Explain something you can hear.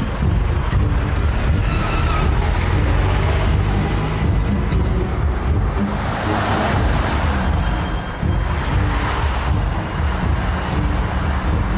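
A car engine roars as it speeds away.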